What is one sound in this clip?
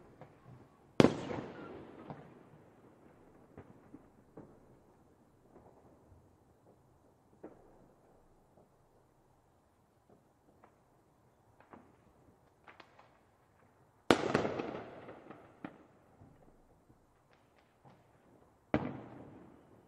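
Fireworks explode with loud, echoing booms.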